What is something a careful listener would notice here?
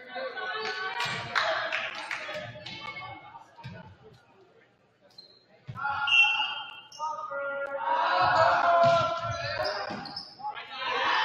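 Young men shout and call out in an echoing gym.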